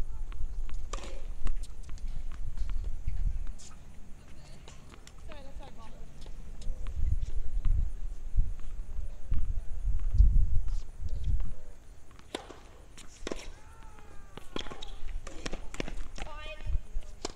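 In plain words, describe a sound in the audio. A tennis ball is struck by a racket with a sharp pop, back and forth.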